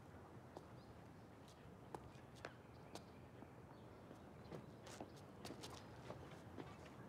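Footsteps tap on concrete.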